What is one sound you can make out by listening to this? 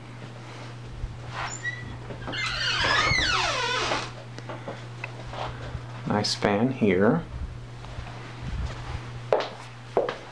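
A ceiling fan hums steadily.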